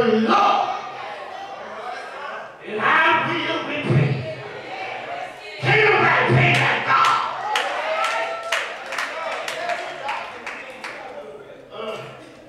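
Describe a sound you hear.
A man preaches with animation into a microphone in an echoing hall.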